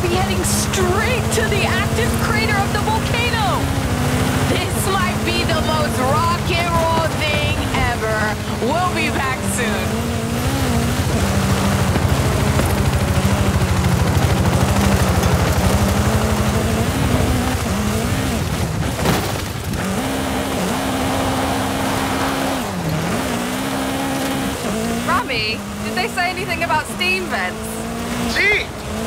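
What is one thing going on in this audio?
Tyres crunch and skid over loose gravel.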